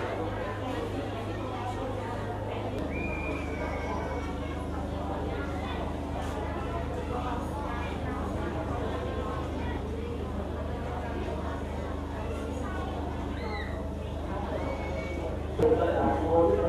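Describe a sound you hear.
A crowd murmurs softly in low voices.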